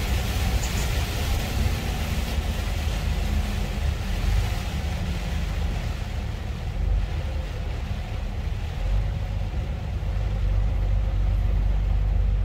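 Windscreen wipers swish back and forth.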